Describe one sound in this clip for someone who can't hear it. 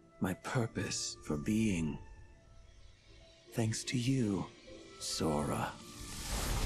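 A man speaks calmly and softly.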